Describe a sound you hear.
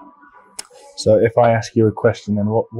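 An older man speaks calmly and close up.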